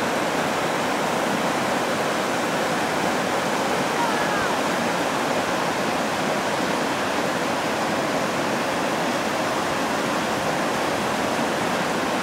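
A shallow river rushes and splashes over rocks.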